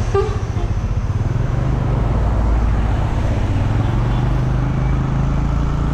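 A heavy truck rumbles past.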